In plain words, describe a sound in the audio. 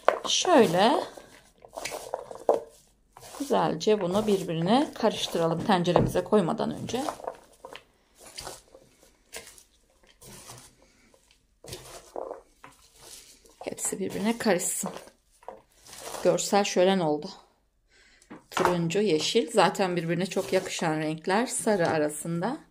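A hand tosses chopped vegetables with a soft rustle.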